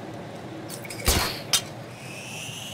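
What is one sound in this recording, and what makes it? A grappling line fires with a sharp snap.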